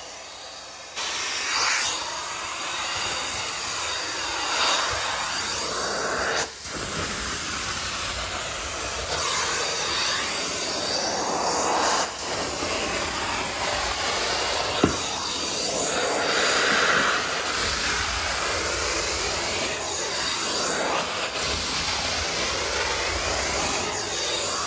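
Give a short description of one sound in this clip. A carpet extractor wand sucks loudly with a steady hissing roar as it is drawn over carpet.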